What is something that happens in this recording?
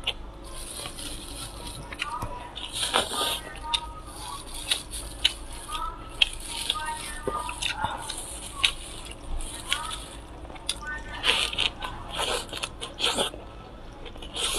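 Lettuce leaves crinkle and rustle in a woman's hands.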